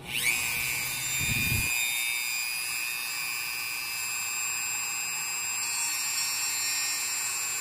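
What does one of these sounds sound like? A rotary tool whirs up to speed and runs with a steady high whine.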